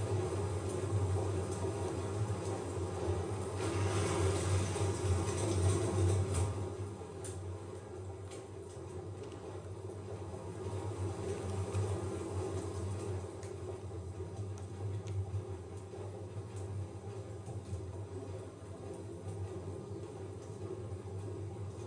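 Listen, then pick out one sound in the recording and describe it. A large engine hums with a low, steady drone.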